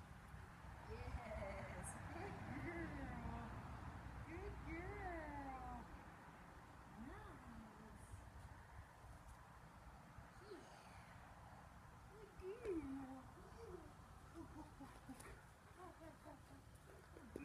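A young woman talks playfully to dogs at a distance outdoors.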